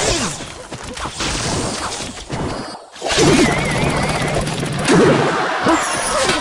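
Cartoonish battle sound effects clash and zap as small troops fight.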